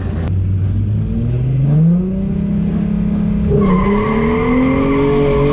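An engine revs up, its pitch climbing.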